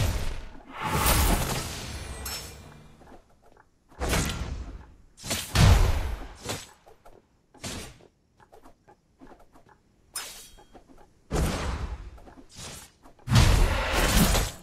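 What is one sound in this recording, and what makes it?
Mobile battle game spell and hit effects burst out in loud, short volleys.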